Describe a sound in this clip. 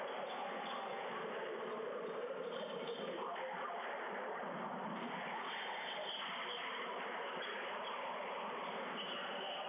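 Shoes squeak on a wooden court floor.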